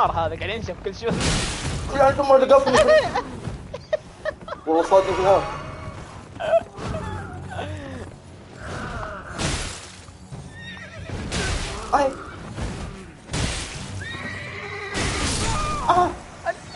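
Heavy weapons clash and strike with loud blows.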